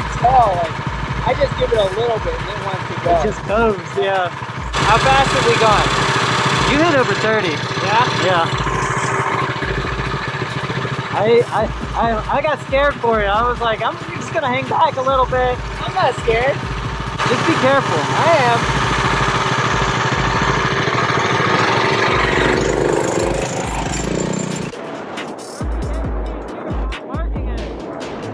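Small kart engines rumble and buzz nearby.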